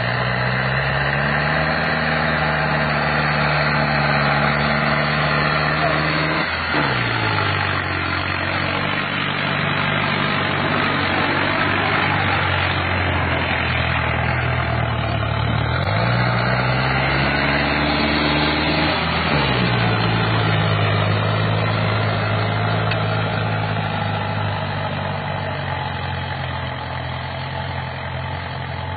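A tractor engine roars loudly nearby, its pitch dropping as it passes close by.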